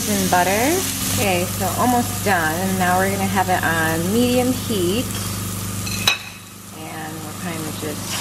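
Mushrooms sizzle in a hot frying pan.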